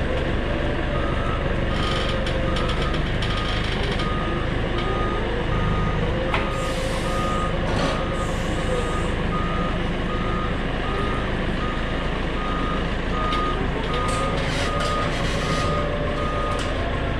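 An alarm beeps steadily in a fast, even rhythm.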